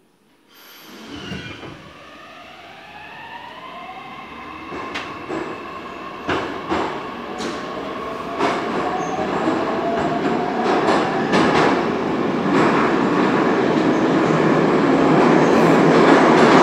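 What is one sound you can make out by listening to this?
Train wheels rumble and clatter on the rails, growing steadily louder.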